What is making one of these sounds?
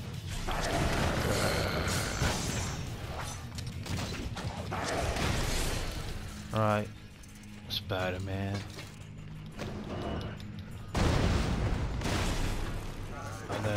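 Blasts and crashes of a fight ring out.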